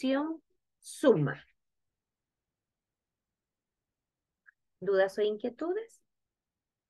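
A young woman speaks calmly into a microphone in short phrases.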